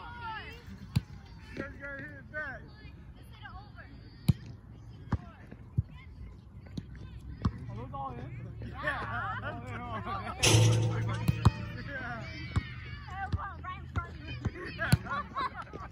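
A volleyball is struck with sharp thumps.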